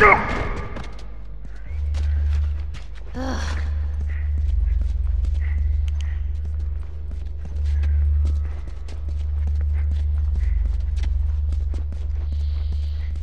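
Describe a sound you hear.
Footsteps tread on a hard floor.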